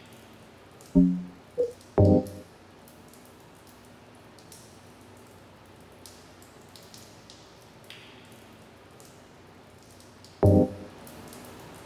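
Short electronic menu tones beep.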